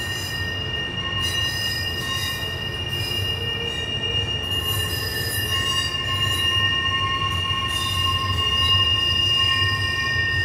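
A freight train rumbles steadily past on the tracks.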